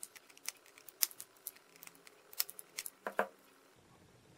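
Wire cutters snip a component lead with sharp clicks.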